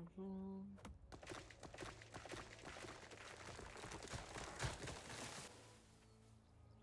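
A tree creaks, falls and crashes to the ground.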